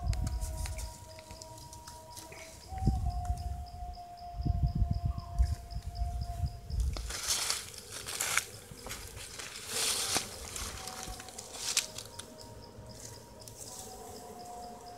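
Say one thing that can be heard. Bees buzz around an opened hive.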